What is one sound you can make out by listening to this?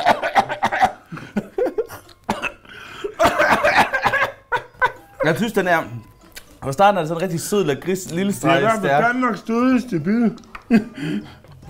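A second man laughs and talks close by.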